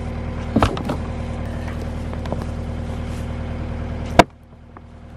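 An engine idles nearby with a steady low rumble.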